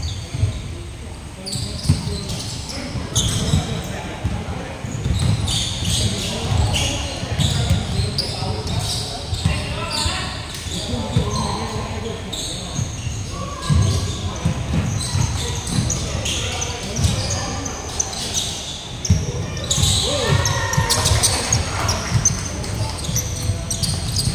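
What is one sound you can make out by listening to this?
Players and onlookers call out and chatter, echoing in a large hall.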